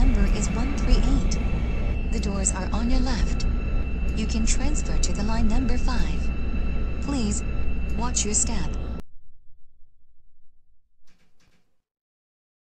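A train rumbles along the tracks and slows down.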